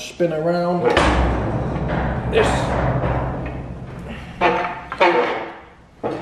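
A heavy engine block rumbles and clunks as it is turned on a stand.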